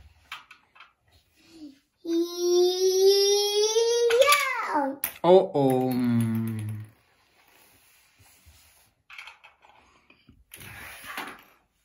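Plastic toy pieces click and clatter on a hard floor.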